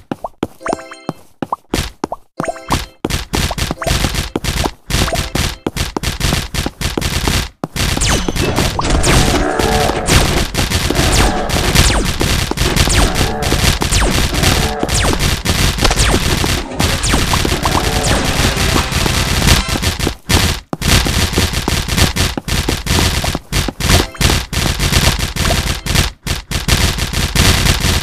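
Game sound effects clatter and pop rapidly as figures fight.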